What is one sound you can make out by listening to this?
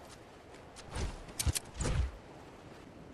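A rifle fires a few sharp, loud shots close by.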